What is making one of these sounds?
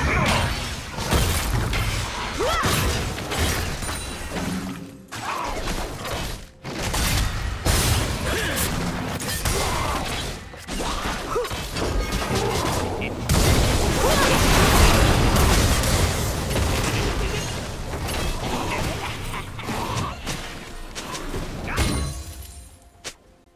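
Weapons clash in a busy fight.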